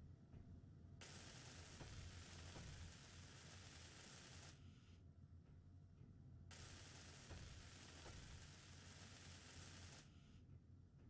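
A welding torch hisses and crackles.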